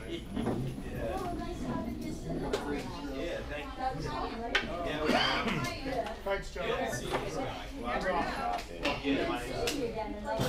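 A crowd of young people chatters nearby in a room.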